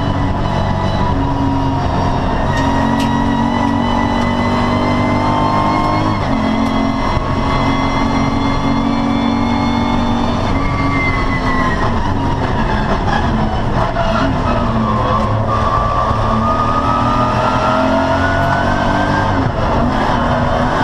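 A race car engine roars loudly from inside the cabin, rising and falling in pitch as the gears shift.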